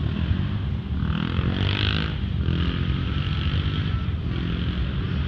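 Tyres screech on pavement as a motorcycle spins.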